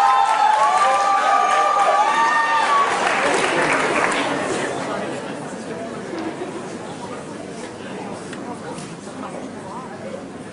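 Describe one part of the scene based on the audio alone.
Dancers' feet step and tap on a wooden stage.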